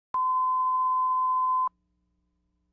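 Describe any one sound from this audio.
A steady, high-pitched test tone sounds briefly, then cuts off into silence.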